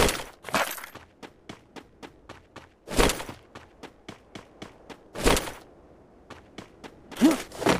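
Quick footsteps thud on a wooden floor.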